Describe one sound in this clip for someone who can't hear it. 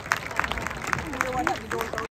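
Brass horns play a melody.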